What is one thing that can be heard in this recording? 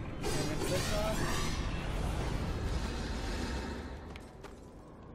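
A loud rushing, crackling whoosh of magic roars and then fades.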